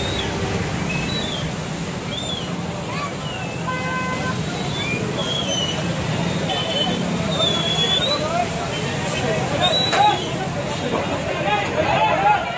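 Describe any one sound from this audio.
Floodwater rushes and roars.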